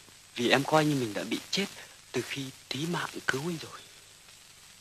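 A man pleads with emotion, close by.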